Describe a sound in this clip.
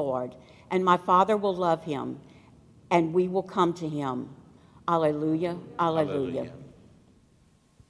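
A middle-aged woman speaks calmly into a microphone in an echoing hall.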